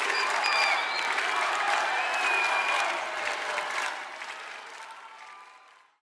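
A large crowd cheers and whistles loudly outdoors, then fades away.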